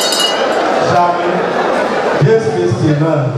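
A man speaks forcefully through a microphone.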